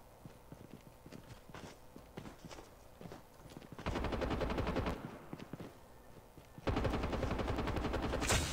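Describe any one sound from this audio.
Footsteps thud quickly on grass and dirt.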